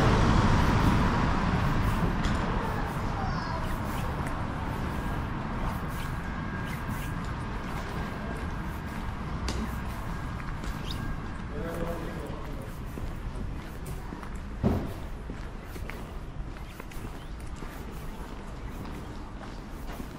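Wind blows and rumbles outdoors, slowly easing off.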